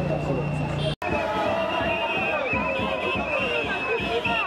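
A large crowd sings and chants outdoors.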